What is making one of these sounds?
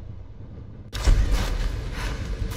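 A torch fire crackles and roars.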